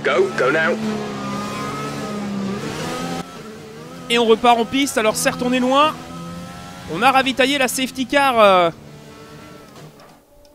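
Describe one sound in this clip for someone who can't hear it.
A racing car engine whines loudly, revving up and down sharply through gear changes.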